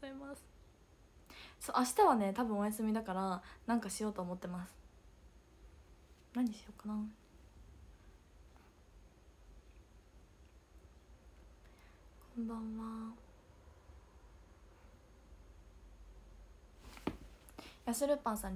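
A young woman speaks with animation, close to a microphone, in short bursts with pauses.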